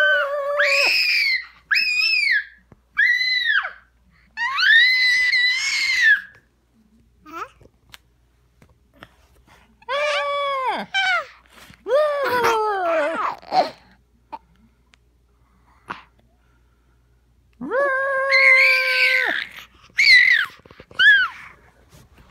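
A toddler squeals and shrieks loudly close by, in high bursts.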